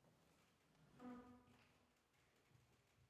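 A piano plays a soft note in a large echoing hall.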